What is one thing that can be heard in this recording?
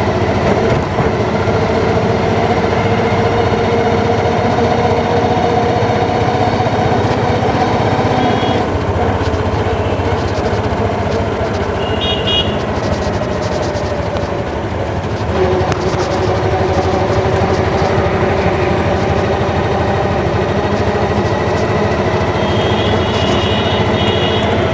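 Tyres roll on a paved road with a steady rumble.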